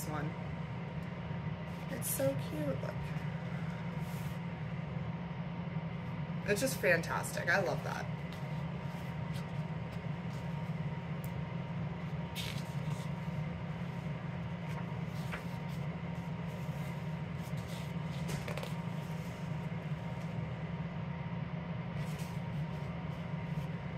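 The paper pages of a softcover book are flipped and rustle.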